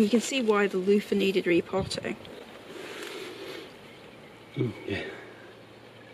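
A plastic pot rustles and crinkles in a woman's hands.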